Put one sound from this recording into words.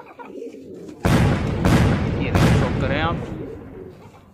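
A pigeon flaps its wings loudly.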